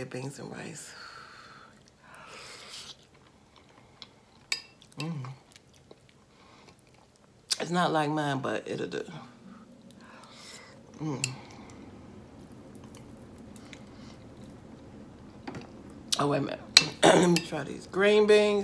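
A woman chews food close to a microphone.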